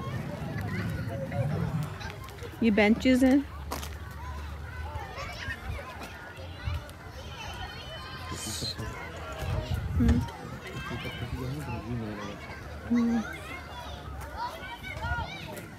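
Young children shout and call out nearby.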